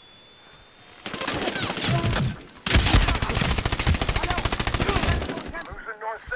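A rifle fires rapid, loud bursts.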